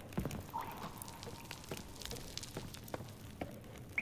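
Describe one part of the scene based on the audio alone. Boots knock on the rungs of a wooden ladder.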